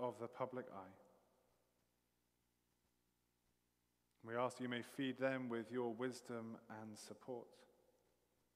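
A middle-aged man speaks calmly and slowly through a microphone in a large echoing room.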